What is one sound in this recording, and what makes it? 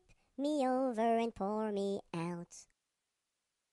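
A cartoonish high-pitched voice speaks with animation, close to the microphone.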